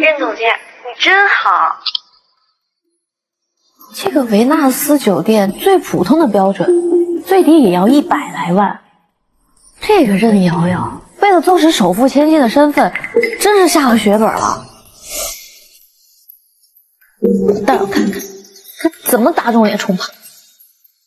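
A young woman speaks calmly and clearly close by.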